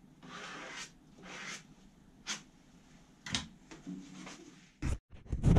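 A sanding pad rubs against a smooth hard surface in short strokes.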